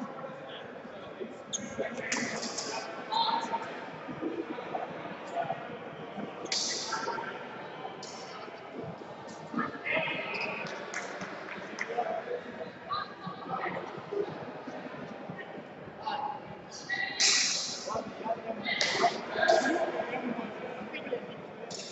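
A crowd of people chatters in the background, echoing.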